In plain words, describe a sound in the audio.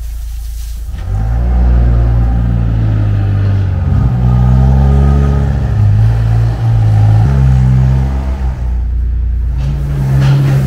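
A small tractor engine runs loudly and revs.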